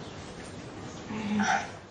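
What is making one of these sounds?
Women laugh happily close by.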